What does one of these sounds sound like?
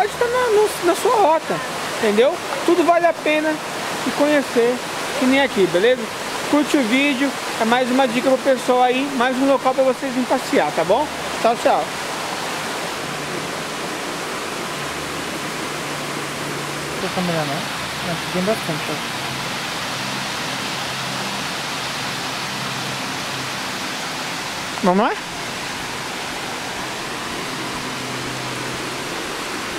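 A waterfall rushes steadily outdoors.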